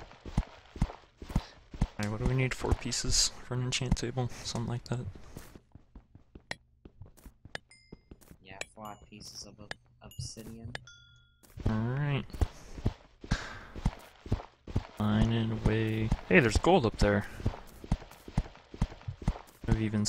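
Stone blocks crack under rapid pickaxe hits.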